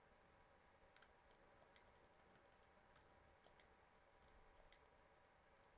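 Soft electronic menu clicks tick now and then.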